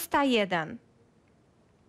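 A young woman speaks briefly into a microphone.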